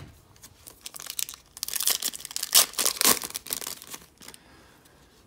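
A plastic wrapper crinkles and tears as it is pulled open.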